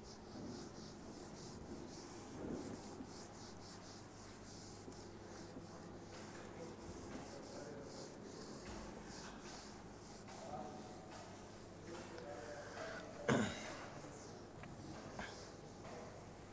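A board eraser rubs and squeaks against a whiteboard.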